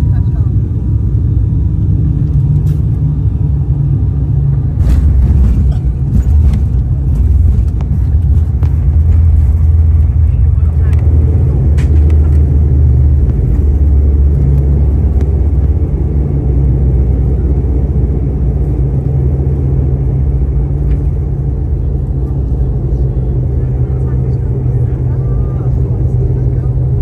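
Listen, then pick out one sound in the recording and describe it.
A jet engine roars steadily from the inside of an airliner cabin.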